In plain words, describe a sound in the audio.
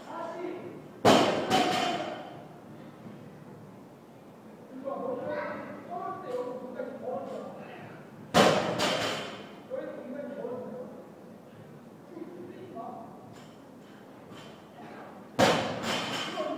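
A barbell crashes down onto the floor with a heavy, echoing clang.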